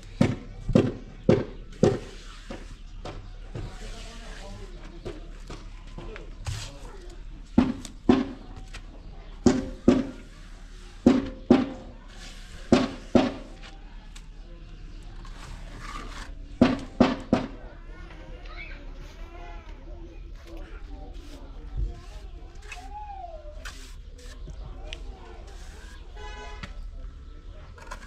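A trowel scrapes across wet cement.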